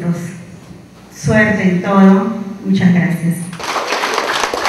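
A woman speaks through a microphone in an echoing hall.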